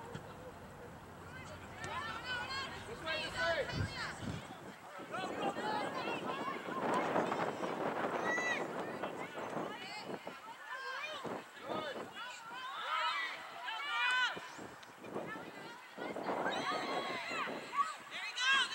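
Young women shout and call to each other across an open field.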